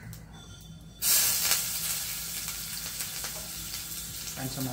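Water boils and hisses loudly in a pot on a gas flame.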